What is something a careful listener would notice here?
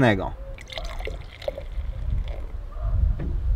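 Beer glugs and fizzes as it pours from a bottle into a glass.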